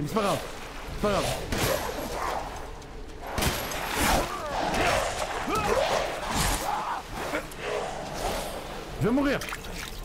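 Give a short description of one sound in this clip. Creatures growl and snarl nearby.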